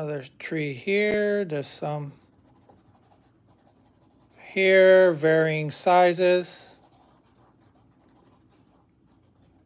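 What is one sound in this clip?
A brush strokes softly across canvas.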